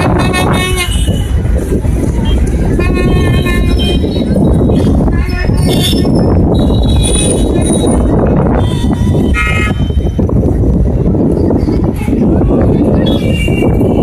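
Vehicles drive past on a road.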